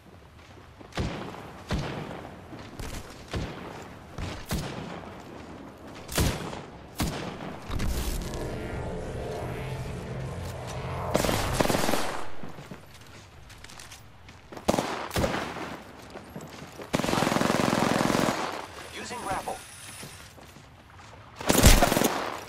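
Gunshots crack in sharp bursts.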